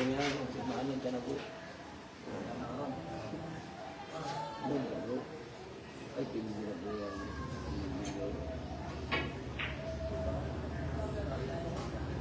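Billiard balls knock together and roll.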